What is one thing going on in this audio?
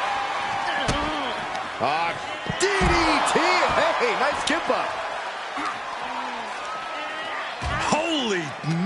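Heavy thuds sound as bodies slam against the ring.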